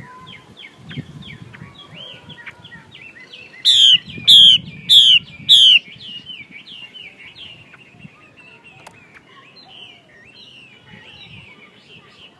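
A caged songbird sings close by in quick, repeated chirping phrases.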